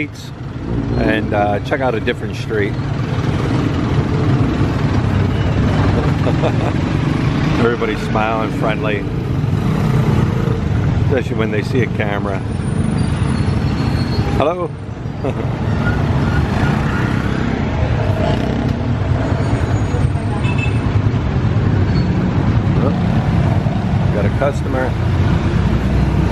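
Motor traffic rumbles steadily along a busy street.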